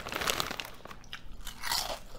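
A man crunches on a potato chip.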